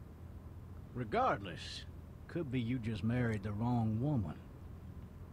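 An elderly man speaks calmly in a low voice.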